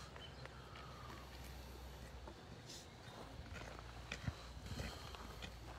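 Footsteps scuff on gravel.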